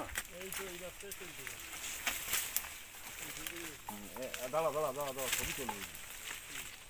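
Men talk loudly nearby outdoors.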